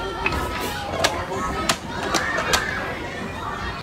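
Plastic buttons click as a child presses them.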